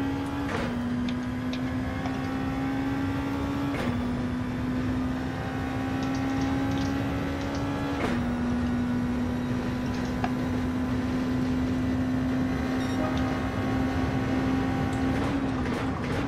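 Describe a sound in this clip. A racing car engine roars and climbs through the gears at high speed.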